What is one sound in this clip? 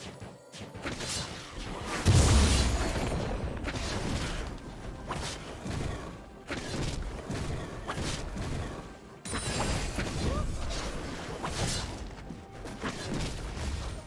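Fantasy battle sound effects crash, whoosh and thud in rapid bursts.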